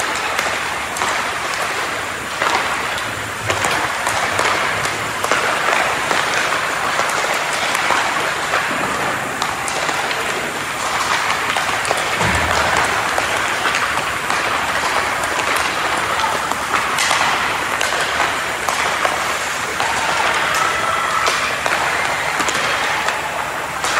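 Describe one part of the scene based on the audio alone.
Skate blades scrape and hiss across the ice in a large echoing rink.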